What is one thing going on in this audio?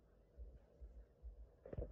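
Fingers brush and rub against the fabric of a cap.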